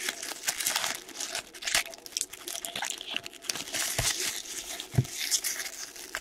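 A foil wrapper crinkles as it is handled.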